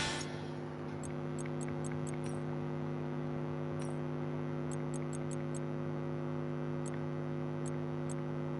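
Menu selections click softly several times.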